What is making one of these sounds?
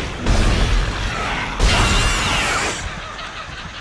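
A weapon fires with loud, booming blasts.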